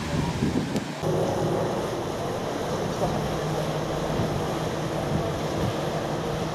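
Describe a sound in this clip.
A boat engine rumbles steadily below.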